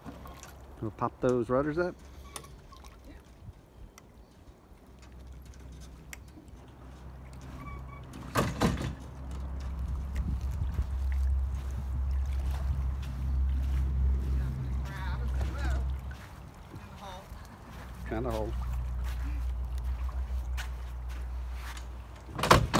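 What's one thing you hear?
Water sloshes around wading legs.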